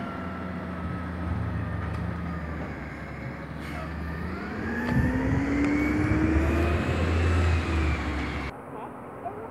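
A heavy truck engine rumbles and revs nearby.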